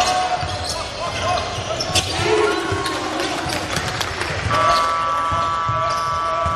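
A crowd murmurs in the stands.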